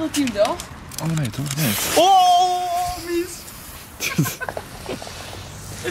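A lighter flicks and sparks.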